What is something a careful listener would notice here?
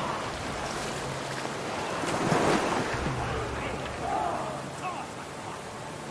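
Water rushes over rocks in a stream.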